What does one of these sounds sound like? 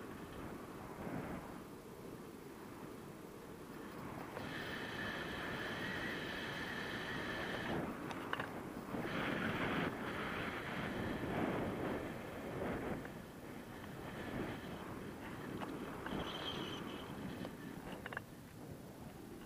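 Wind rushes loudly past, outdoors high in the air.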